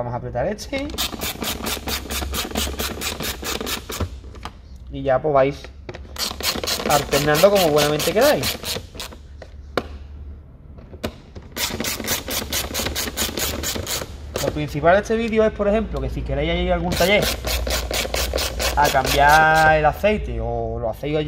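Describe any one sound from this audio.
A ratchet wrench clicks rapidly in quick bursts.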